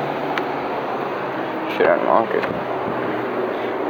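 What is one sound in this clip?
A car door latch clicks and the door swings open.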